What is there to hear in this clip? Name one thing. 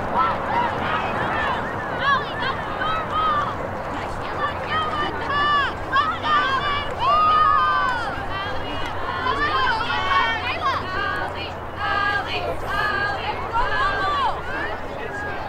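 Young women shout and call to each other across an open field.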